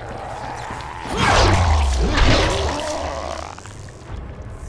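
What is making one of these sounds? A creature snarls and growls up close.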